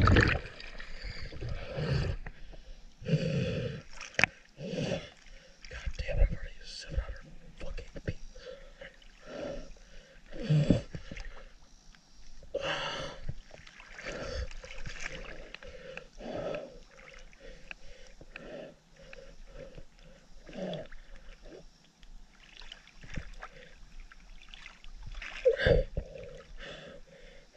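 Water splashes and laps close by as a swimmer moves through it.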